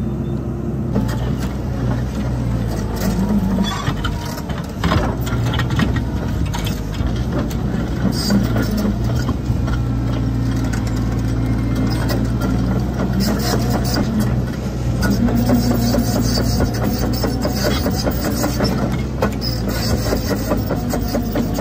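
A plough attachment cuts and scrapes through soil and roots.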